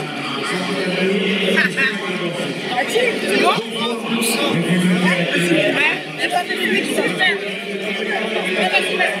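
A large crowd chatters and shouts loudly in an echoing hall.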